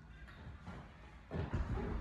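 A woman's feet thump on a wooden floor.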